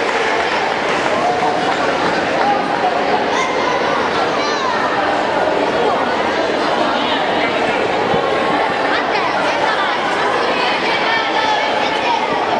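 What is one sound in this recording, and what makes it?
A crowd of children and adults chatter throughout.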